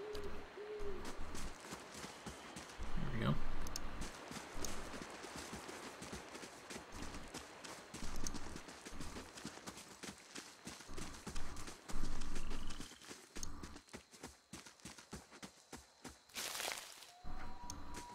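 Footsteps tread steadily on rough ground.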